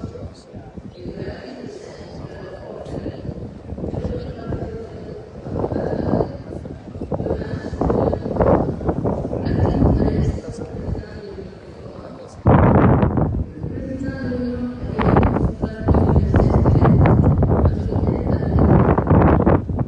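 A large crowd murmurs and chatters in an open stadium.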